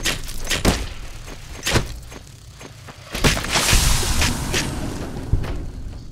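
Gunshots crack and boom in quick bursts.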